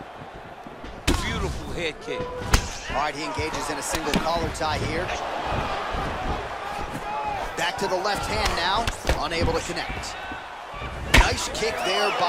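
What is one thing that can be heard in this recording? Blows land with sharp thuds.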